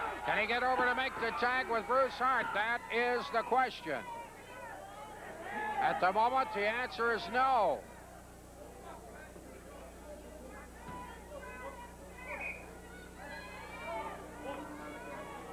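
A crowd murmurs and calls out in a large hall.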